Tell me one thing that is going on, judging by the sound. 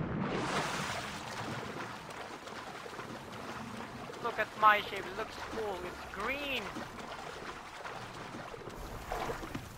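Water swishes and splashes around a swimmer.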